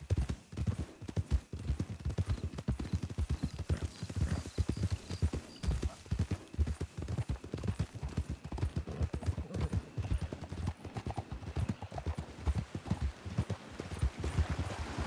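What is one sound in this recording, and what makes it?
Horse hooves thud steadily on soft ground at a trot.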